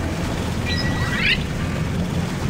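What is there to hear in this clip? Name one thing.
A short rising chime rings out.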